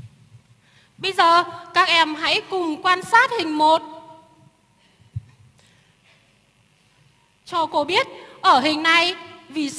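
A young woman speaks clearly through a loudspeaker in a large hall.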